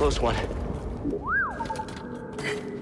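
A small robot beeps and warbles.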